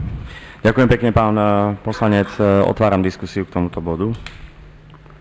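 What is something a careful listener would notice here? A middle-aged man speaks steadily into a microphone.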